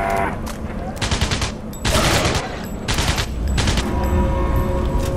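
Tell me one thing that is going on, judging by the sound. A gun fires loud bursts of shots.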